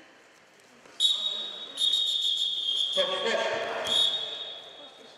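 A referee blows a whistle in sharp, shrill blasts.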